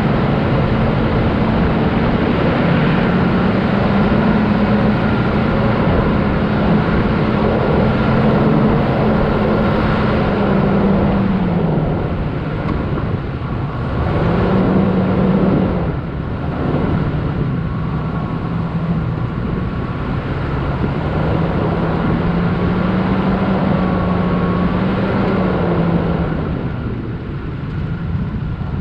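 Tyres churn through soft sand.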